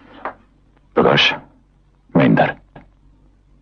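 A man answers into a telephone, speaking tensely.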